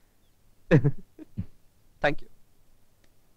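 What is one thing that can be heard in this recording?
A young man laughs softly.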